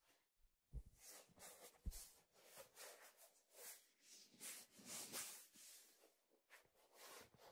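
Hands rub and brush close to a microphone.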